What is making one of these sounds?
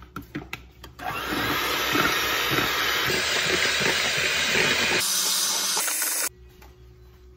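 An electric hand mixer whirs loudly as it beats a liquid in a bowl.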